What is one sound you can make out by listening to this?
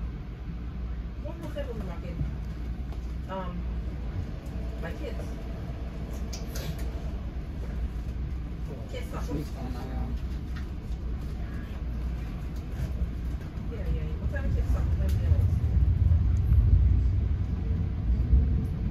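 A train rumbles steadily along the tracks, growing louder near the end.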